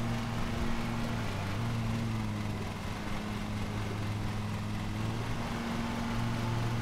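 A lawn mower engine drones steadily.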